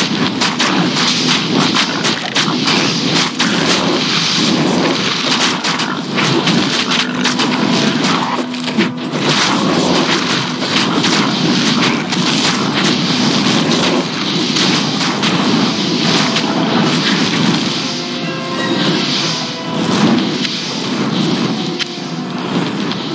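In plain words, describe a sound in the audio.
Game combat sounds clash and crackle steadily.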